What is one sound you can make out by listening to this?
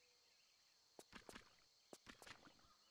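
Footsteps patter on stone as a game character runs.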